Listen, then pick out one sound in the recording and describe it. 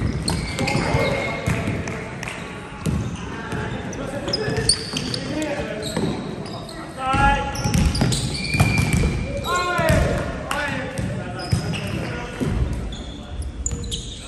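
Young men call out and shout during play.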